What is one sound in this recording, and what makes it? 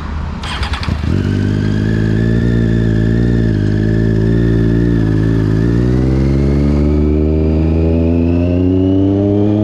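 A motorcycle pulls away, its engine note steady and then rising as it speeds up.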